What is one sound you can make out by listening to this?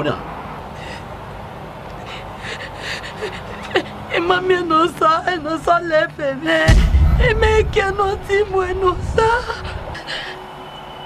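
A woman cries and speaks in a wailing voice, close by.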